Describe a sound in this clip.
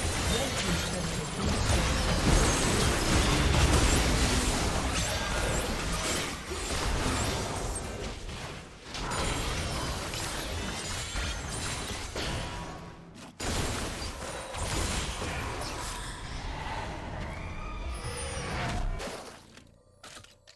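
Game spell effects burst and clash in a fight.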